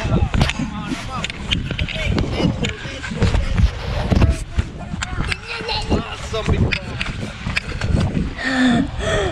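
A snow tube scrapes and rumbles over a plastic slope.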